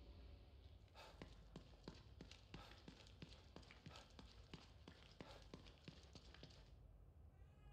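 Footsteps run quickly across a hard tiled floor.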